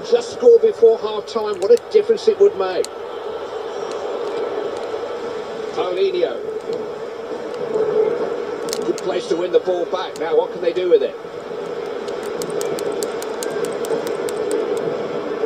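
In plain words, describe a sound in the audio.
A stadium crowd roars steadily from a television speaker.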